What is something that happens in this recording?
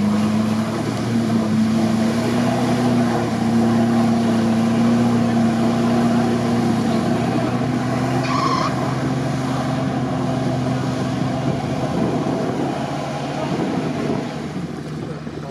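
Mud and water churn and splash under spinning tyres.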